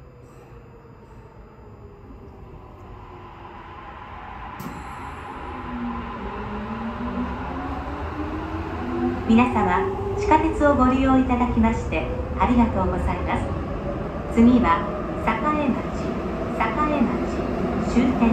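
A train's electric motor whines and rises in pitch as the train speeds up.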